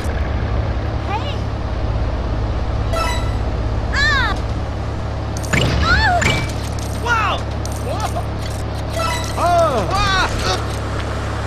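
Small coins chime brightly as they are picked up.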